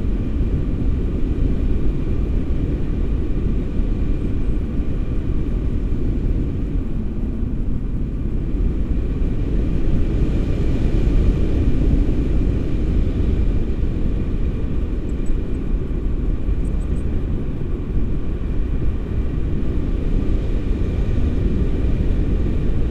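Strong wind buffets and roars against a microphone.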